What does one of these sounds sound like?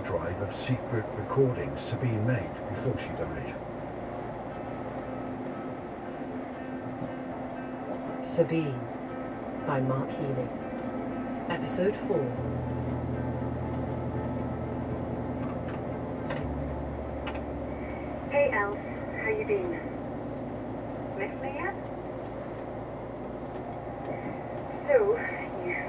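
A vehicle's engine hums steadily while driving on a motorway.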